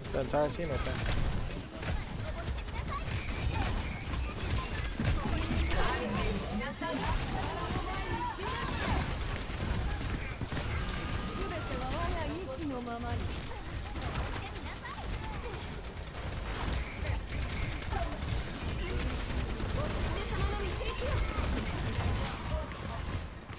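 Game explosions boom.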